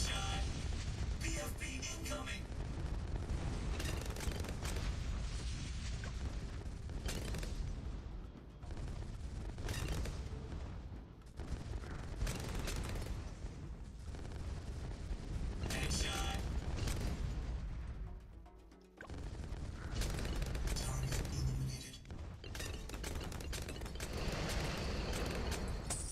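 Game explosions and popping effects burst rapidly and continuously.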